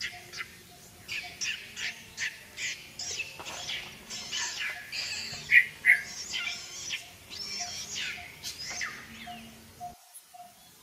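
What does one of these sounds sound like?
Monkeys shriek and squeal loudly nearby.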